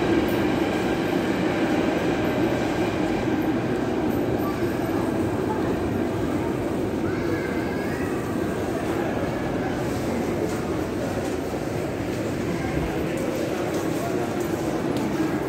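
An escalator hums steadily.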